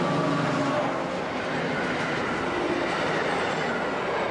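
Train carriages rumble and clatter past on the tracks.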